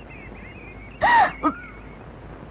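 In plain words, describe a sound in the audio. A woman gasps in surprise.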